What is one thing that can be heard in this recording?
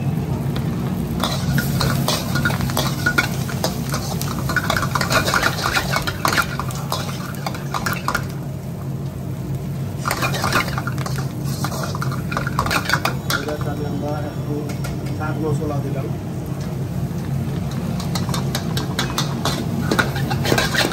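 Vegetables sizzle loudly in a hot wok.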